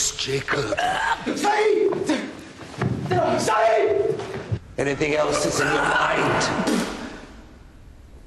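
A man shouts and grunts while struggling.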